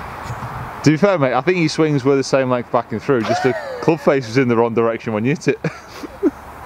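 A young man laughs loudly.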